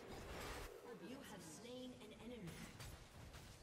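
A young woman speaks calmly into a close microphone.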